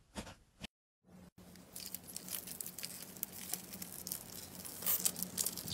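Foam beads crackle and rustle as hands pull them apart.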